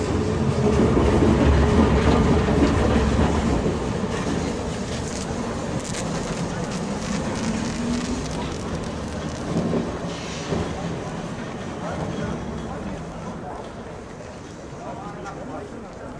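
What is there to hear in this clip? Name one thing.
Steel wheels rumble and squeal on tram rails.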